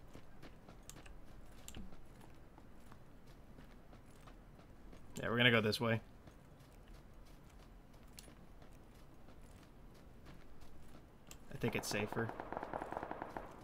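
Footsteps rustle steadily through grass.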